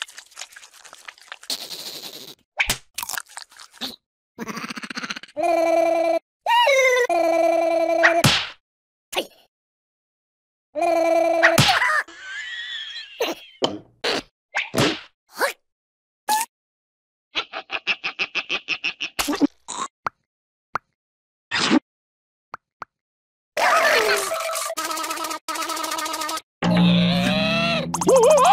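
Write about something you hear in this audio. Cartoon larvae babble and squeal in high, silly voices.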